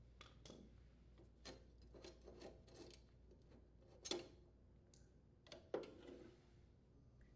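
Metal parts clink and tap softly.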